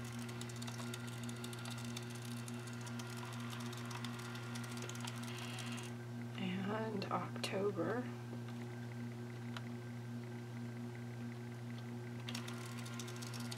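A plastic device clicks and rattles as hands turn it over.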